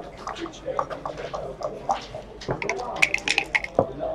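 Dice clatter across a hard board.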